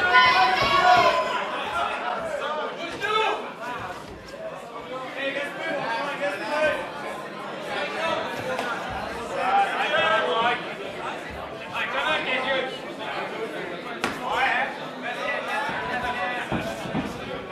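Fists and shins thud against bodies.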